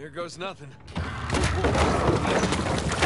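Wooden planks creak and rattle.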